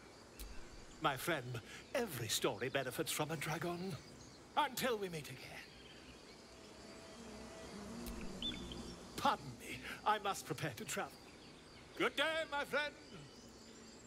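A man speaks with animation and flourish, close up.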